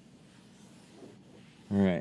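A cloth rubs softly against the inside of a windshield.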